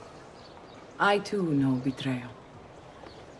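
A woman answers calmly, close by.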